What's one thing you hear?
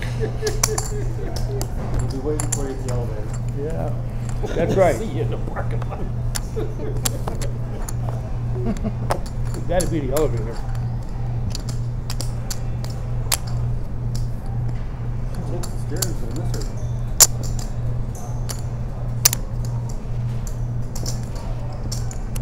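Poker chips click and clatter on a table.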